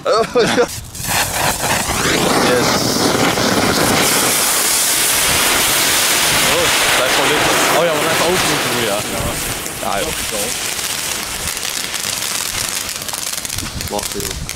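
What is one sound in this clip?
A firework fountain hisses and crackles loudly as it sprays sparks.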